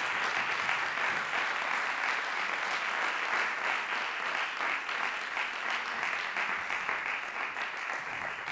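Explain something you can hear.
An audience claps steadily in a large hall.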